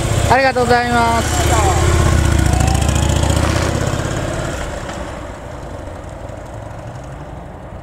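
A V-twin Harley-Davidson touring motorcycle rumbles as it rides away and fades into the distance.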